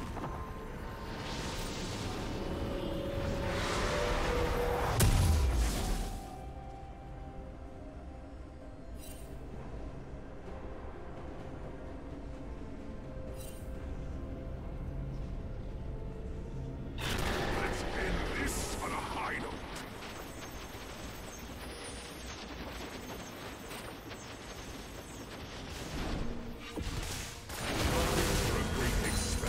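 Magical blasts whoosh and crackle in bursts.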